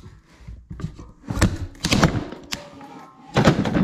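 A wooden plank slides and knocks against a hard floor close by.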